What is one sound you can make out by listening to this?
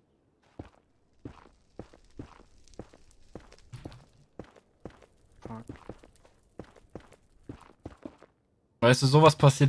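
Blocks crunch as they are mined in a game.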